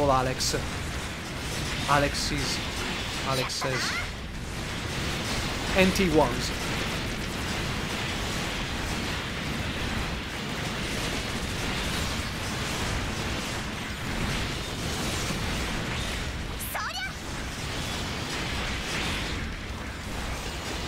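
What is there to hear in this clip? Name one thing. Energy weapons fire with sharp zaps and blasts.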